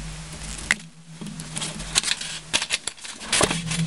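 Plastic bulbs knock down onto a rubber mat.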